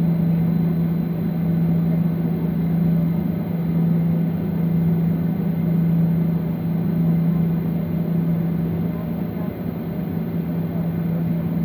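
An aircraft engine hums steadily from inside the cabin.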